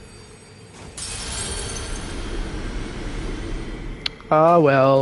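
A magical spell whooshes and crackles loudly.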